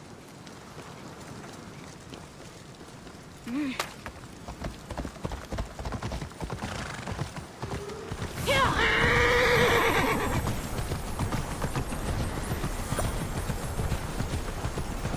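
Footsteps run quickly over stone.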